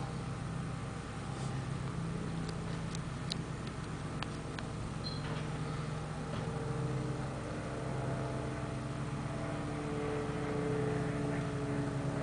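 A garbage truck engine idles with a steady low rumble.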